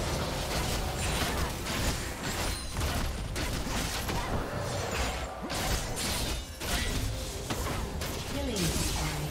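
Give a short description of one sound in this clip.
Magic spells crackle and burst in quick succession.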